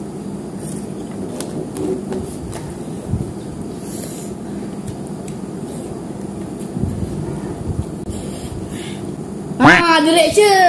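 A boy slurps noodles.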